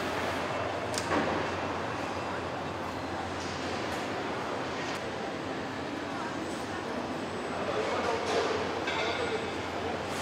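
Machinery hums steadily through a large echoing hall.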